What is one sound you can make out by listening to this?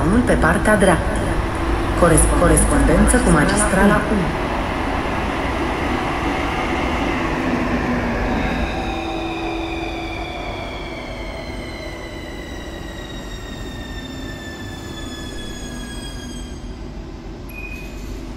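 A train rumbles along the rails as it pulls in.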